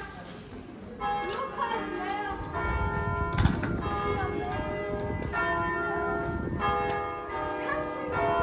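Church bells ring out loudly.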